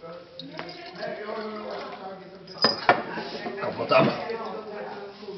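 Several men and women talk casually nearby.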